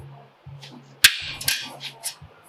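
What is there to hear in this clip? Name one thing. A thin metal sheet flexes and rattles.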